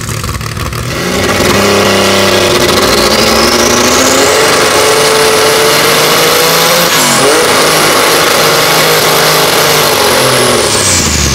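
A racing car engine roars loudly, revving higher and shifting gear.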